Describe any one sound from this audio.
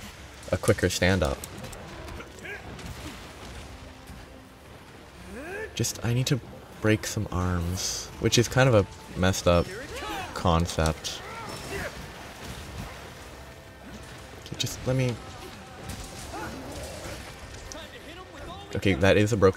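Heavy sword blows strike a monster with loud impacts.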